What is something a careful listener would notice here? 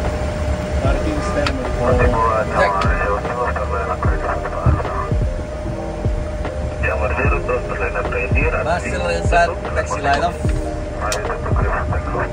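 A young man speaks calmly through a headset microphone.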